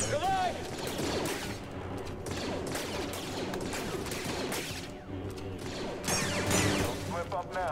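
Blaster shots zap in quick bursts.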